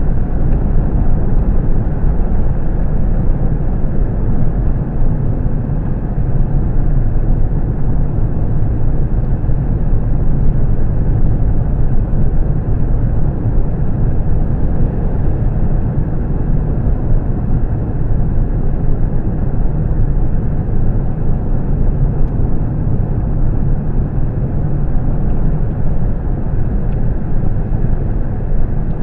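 Tyres roll on the road with a low, steady rumble.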